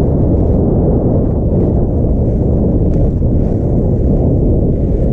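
Wind rushes loudly and steadily past, outdoors.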